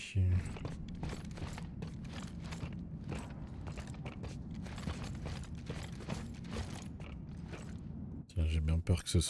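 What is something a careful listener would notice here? Heavy boots step on a metal floor.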